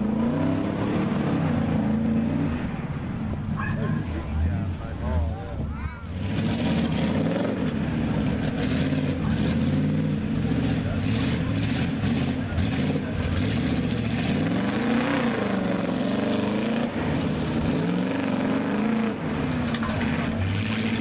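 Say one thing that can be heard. A big engine roars and revs loudly.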